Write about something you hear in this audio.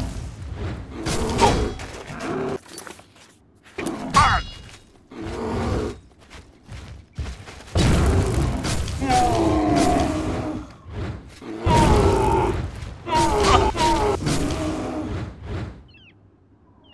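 A large monster growls and roars loudly.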